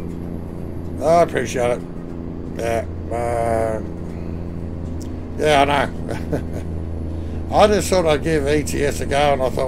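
A middle-aged man speaks with animation, close to a headset microphone.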